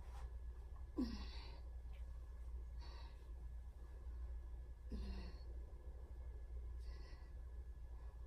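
A woman breathes out sharply, close by, every couple of seconds.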